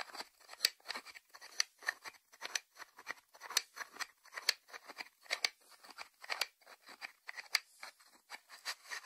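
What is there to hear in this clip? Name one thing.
Fingertips tap quickly on a ceramic lid.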